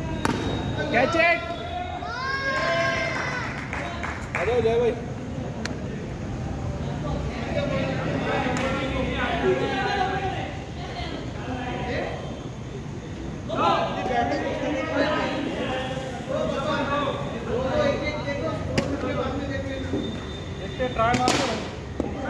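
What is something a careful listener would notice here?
Men talk and call out to each other nearby.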